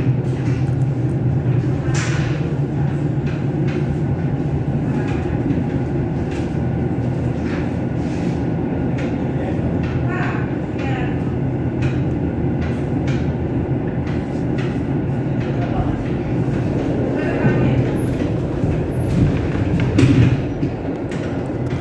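A train rumbles steadily along the tracks, heard from inside.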